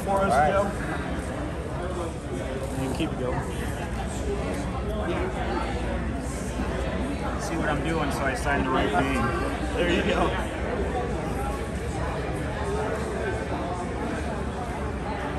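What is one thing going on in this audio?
An older man talks and answers.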